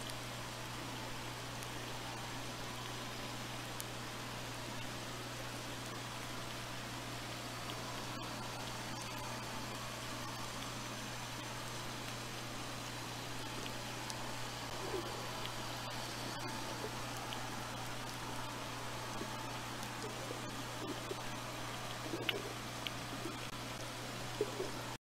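A steady underwater hiss fills the water, with faint crackles and clicks.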